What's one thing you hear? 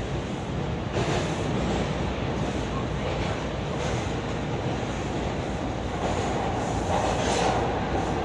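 A train's rumble grows louder and echoes inside a tunnel.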